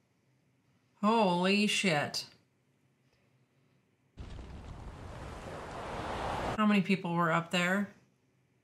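A woman speaks with surprise, close by.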